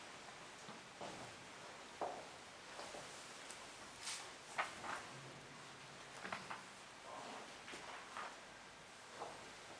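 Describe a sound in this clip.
An elderly man speaks calmly and slowly, in a slightly echoing room.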